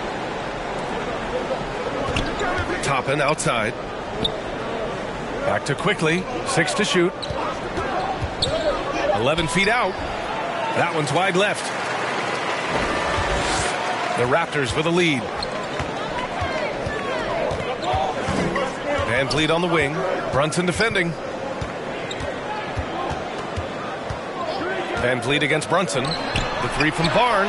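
A crowd murmurs throughout a large echoing arena.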